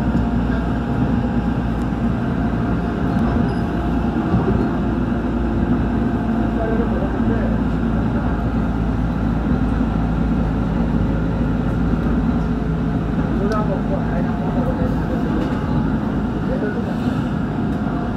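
An electric commuter train runs at speed, heard from inside a carriage.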